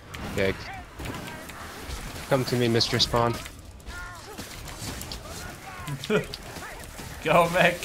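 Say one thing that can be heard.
Blades hack into snarling creatures in a fierce melee.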